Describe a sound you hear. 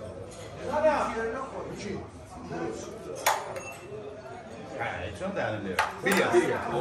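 Several men talk with animation nearby.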